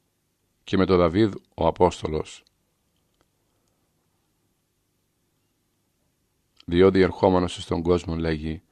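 A middle-aged man reads aloud calmly, close to a microphone.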